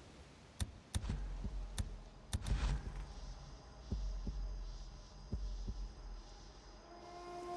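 Footsteps rustle through tall dry grass.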